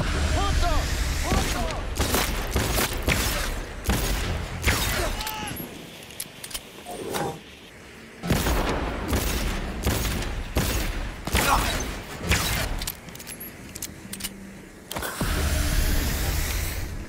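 Gunshots ring out in quick bursts and single shots.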